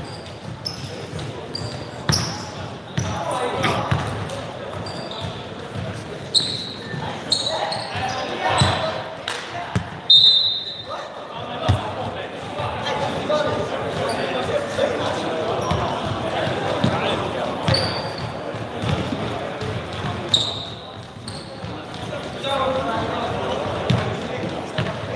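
A crowd of young people chatter and call out across an echoing hall.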